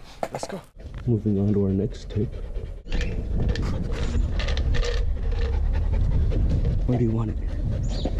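A dog howls and whines nearby.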